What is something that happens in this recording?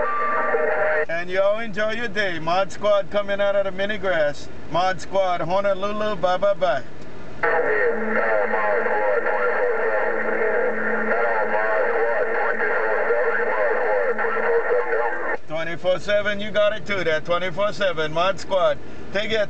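Warbling, squealing radio signals come and go through a loudspeaker.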